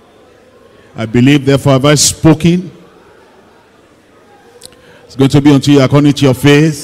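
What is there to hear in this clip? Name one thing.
An elderly man preaches forcefully into a microphone, heard through loudspeakers.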